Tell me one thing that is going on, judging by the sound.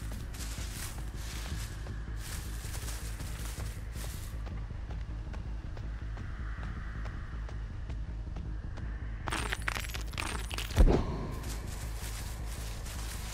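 Footsteps crunch steadily through leaves and undergrowth.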